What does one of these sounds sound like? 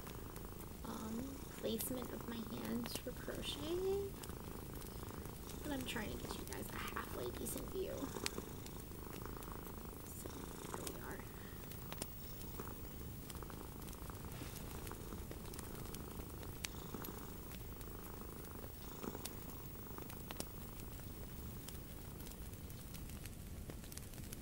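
Twine rustles softly as hands wind and tie it.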